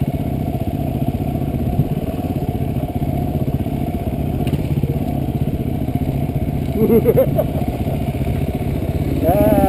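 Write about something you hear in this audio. A motorcycle engine rumbles steadily at low speed.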